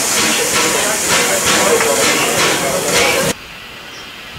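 A steam locomotive hisses loudly close by.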